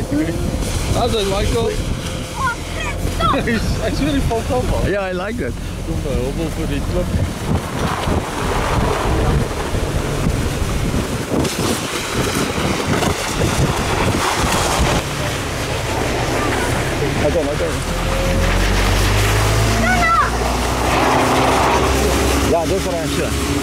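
Young boys shout and laugh excitedly nearby.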